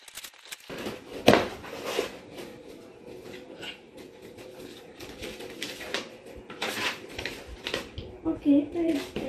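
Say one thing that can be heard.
Paper crinkles as it is unfolded.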